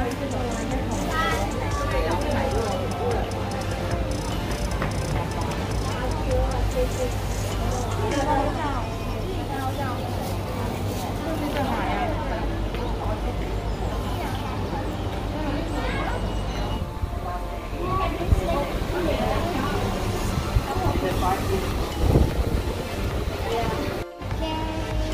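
A woman talks cheerfully nearby.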